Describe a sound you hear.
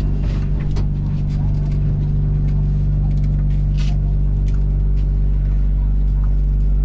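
A train hums steadily at low pitch.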